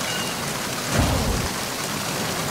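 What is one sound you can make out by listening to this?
A heavy metal door thuds open.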